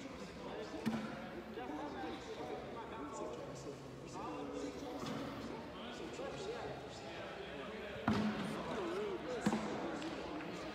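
Several men talk and call out in a large echoing hall.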